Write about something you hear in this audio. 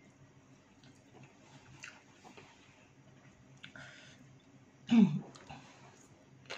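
A woman chews and slurps food close by.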